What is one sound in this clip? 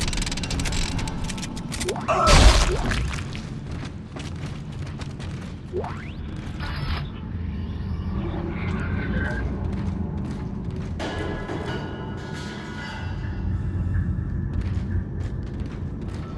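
Heavy armored footsteps thud on a metal floor.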